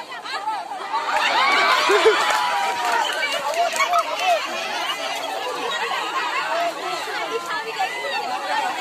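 A crowd of women and children chatter and shout excitedly outdoors.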